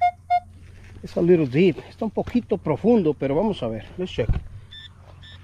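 A metal detector gives a loud warbling tone that wavers up and down.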